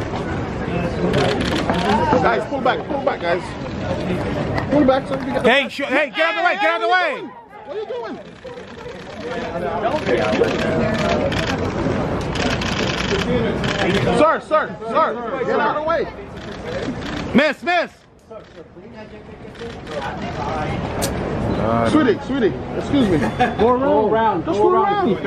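A crowd of people talks and calls out close by.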